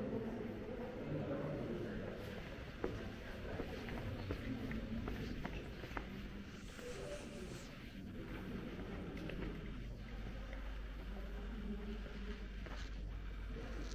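Adults murmur quietly in a large echoing hall.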